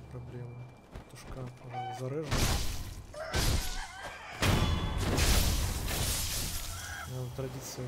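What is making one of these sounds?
Swords clash and slash sharply in a fight.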